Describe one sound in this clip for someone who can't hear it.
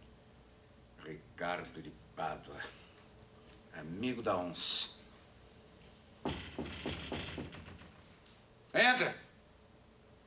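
An elderly man speaks firmly and slowly, close by.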